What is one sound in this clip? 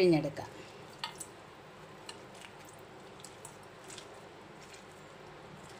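Juice drips and patters into a metal bowl.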